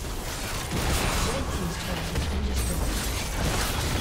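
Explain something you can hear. A tower crumbles with a heavy explosion.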